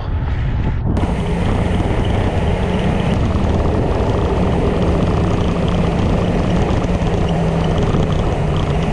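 Wind rushes loudly past a microphone.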